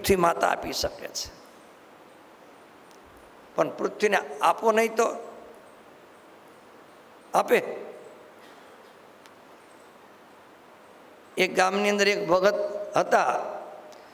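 An elderly man speaks slowly and calmly into a microphone, with pauses.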